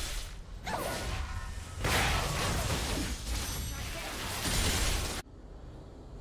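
Video game battle effects clash and burst loudly.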